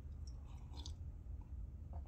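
A man sips from a mug.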